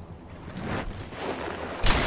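A heavy blow lands with a sharp thud.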